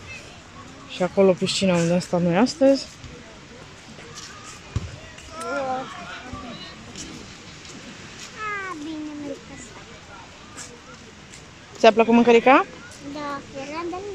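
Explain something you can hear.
A little girl babbles and squeals close by.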